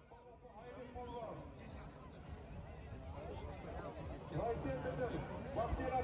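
Many horses gallop, hooves thudding on dusty ground.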